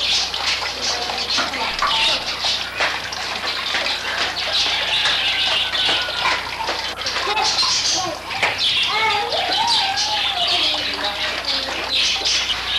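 Water trickles and splashes steadily into a pool.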